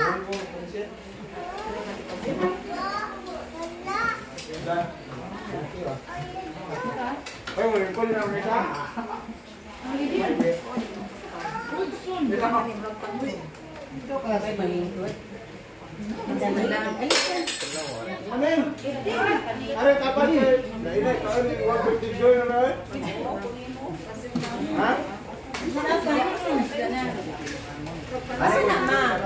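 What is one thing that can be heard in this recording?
Several men and women chat and talk over each other nearby.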